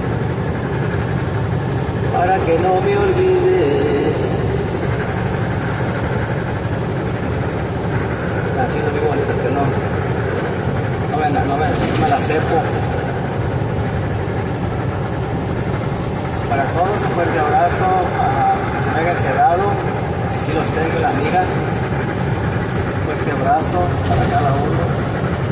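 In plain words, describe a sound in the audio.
Tyres roar on the highway.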